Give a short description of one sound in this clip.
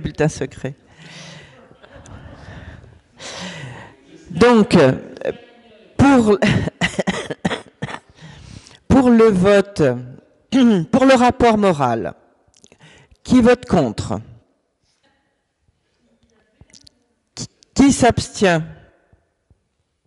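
A woman speaks calmly into a microphone, heard through a loudspeaker in a room.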